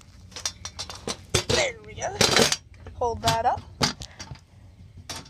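A wire cage rattles and clicks.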